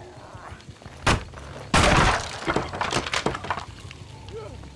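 Wooden boards smash and splinter with a loud crash.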